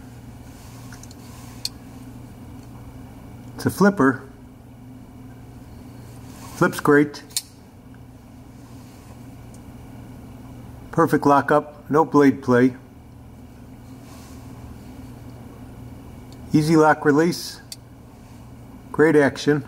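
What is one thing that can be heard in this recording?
A folding knife blade clicks as it opens and locks.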